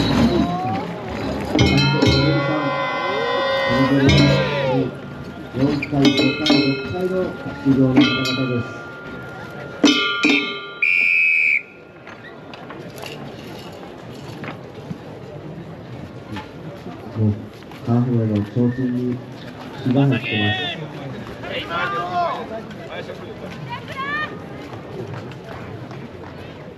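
A large outdoor crowd murmurs in the background.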